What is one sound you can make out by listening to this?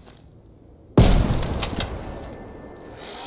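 A loud blast booms and slowly rumbles away.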